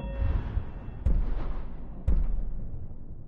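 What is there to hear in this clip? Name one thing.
Two low booming hits sound a second apart.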